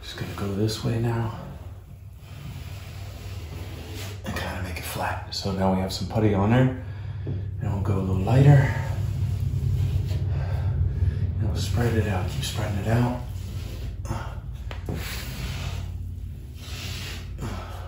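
A putty knife scrapes and smooths wet plaster on a wall.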